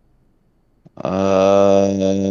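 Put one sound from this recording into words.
A young man speaks loudly into a microphone up close.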